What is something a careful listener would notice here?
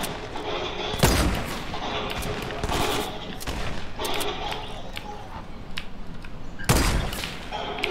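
A rifle fires with a loud bang.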